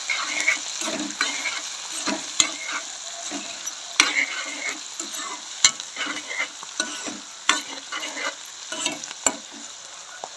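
A metal spatula scrapes and clinks against a metal pan.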